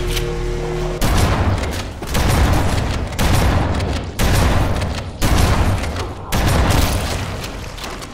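A shotgun fires heavy blasts at a steady pace.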